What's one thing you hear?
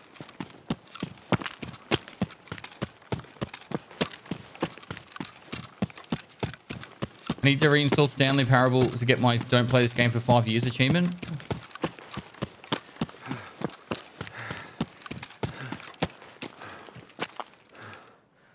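Footsteps crunch quickly over gravel and dirt.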